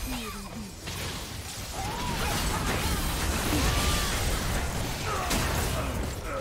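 Video game spell effects whoosh, crackle and clash in a fast fight.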